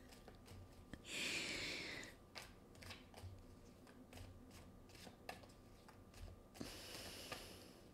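Cards shuffle and riffle in a woman's hands.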